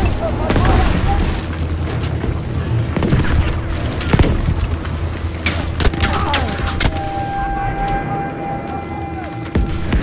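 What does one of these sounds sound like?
Explosions rumble low and steadily in the distance.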